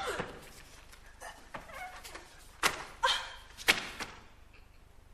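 Feet stamp sharply on a wooden stage floor.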